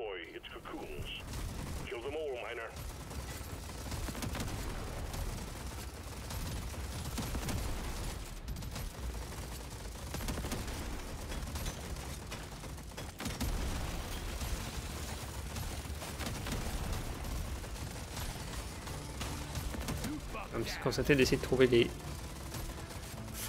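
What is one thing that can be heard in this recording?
Video game gunfire and explosions rumble and crackle steadily.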